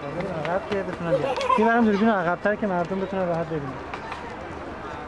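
Young children talk and chatter close by.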